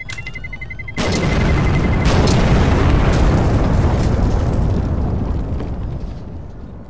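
A smoke grenade hisses as thick smoke pours out.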